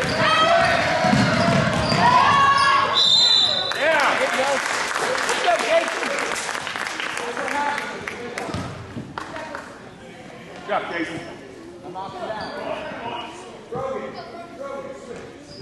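A crowd of spectators cheers and calls out in a large echoing gym.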